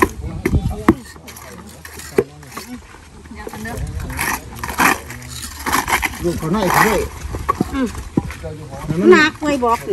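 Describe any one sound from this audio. Metal tools scrape and tap on stone and mortar.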